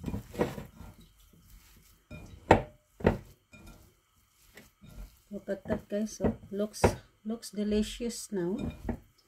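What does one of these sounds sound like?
Hands squish and mix a soft, wet food mixture in a glass bowl.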